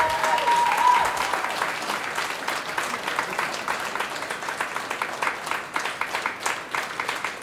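A drummer taps out a quick rhythm on cymbals and drums.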